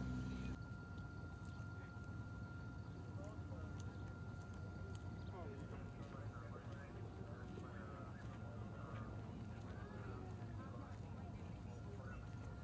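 Several men and women talk quietly nearby outdoors.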